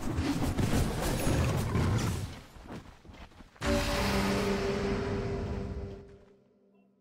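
Magic blasts and impacts crash loudly in a fight.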